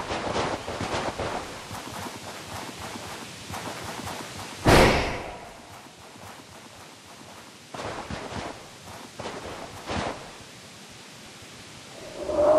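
Light paws patter quickly over grass and stone.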